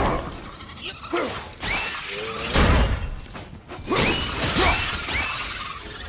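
Heavy blows thud and crash in a game fight.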